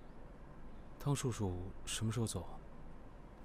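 A young man asks a question calmly nearby.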